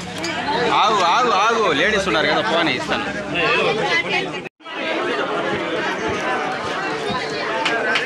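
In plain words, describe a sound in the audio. A crowd of men and women talk loudly all around, close by.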